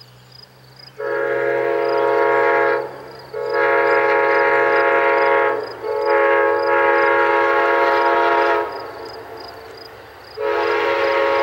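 A train horn blows in long, loud blasts as a train approaches.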